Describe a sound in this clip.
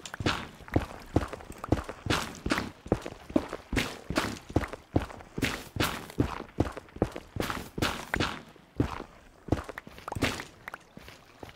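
Footsteps crunch quickly over rough stone.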